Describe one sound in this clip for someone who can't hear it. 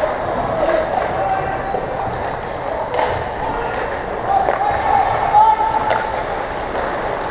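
Skates scrape and hiss on ice in a large echoing rink.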